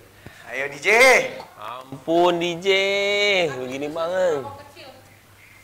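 A young man speaks loudly and animatedly close by, his voice drawn out as if singing.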